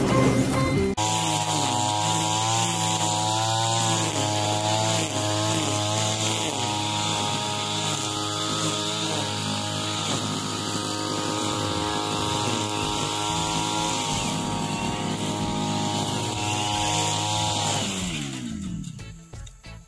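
A petrol grass trimmer engine whines steadily at high speed, then winds down.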